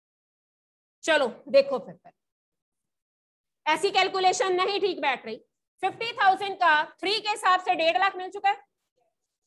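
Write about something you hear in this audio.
A woman explains calmly into a microphone, in short bursts with pauses.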